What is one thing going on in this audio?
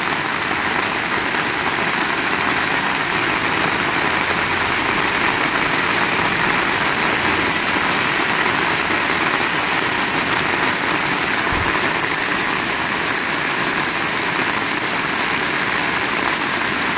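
Steady rain falls and patters on wet pavement outdoors.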